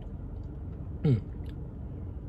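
A man lets out a short, satisfied exhale after drinking.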